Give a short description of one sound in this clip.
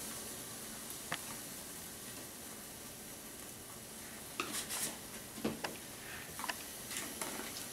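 Food simmers and bubbles in a pot.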